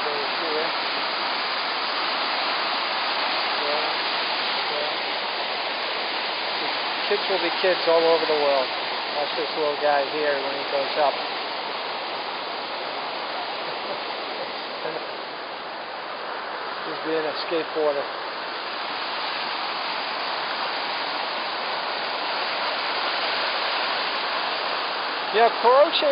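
Water rushes and churns loudly through a sluice.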